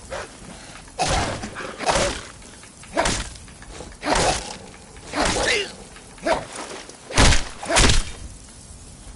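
Blows land in a fight, with sharp thuds and clangs.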